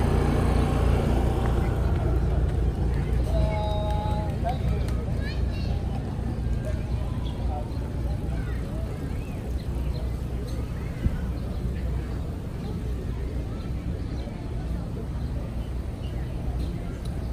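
Men and women chatter faintly in the distance outdoors.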